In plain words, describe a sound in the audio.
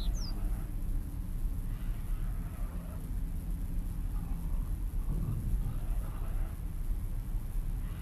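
Wind blows steadily through trees and grass outdoors.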